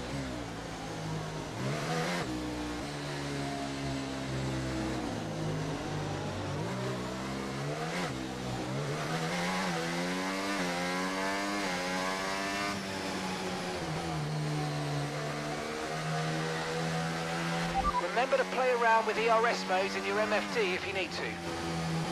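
A racing car engine whines steadily, rising and falling in pitch as the car speeds up and brakes.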